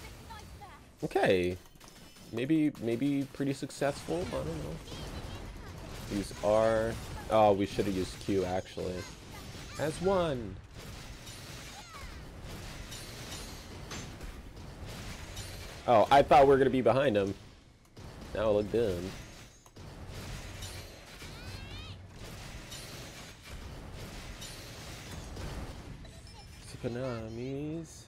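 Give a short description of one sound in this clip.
Blades slash and clang in quick, repeated strikes.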